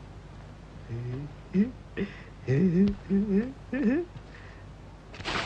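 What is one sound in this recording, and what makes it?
A young man talks and groans up close.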